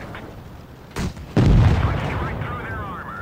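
A shell explodes against a tank with a sharp bang.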